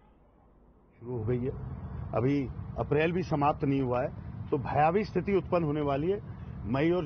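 A middle-aged man speaks calmly and firmly into microphones close by.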